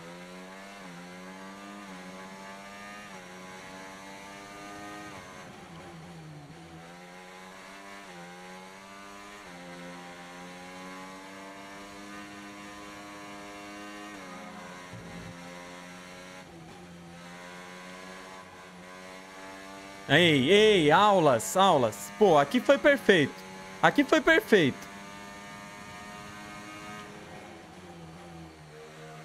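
A racing car engine whines, rising and falling in pitch as it shifts gears.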